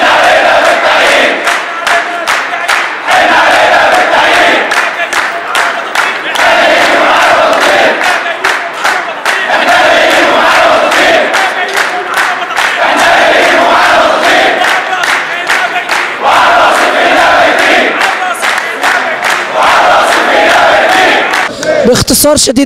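A crowd of men chants loudly in rhythm outdoors.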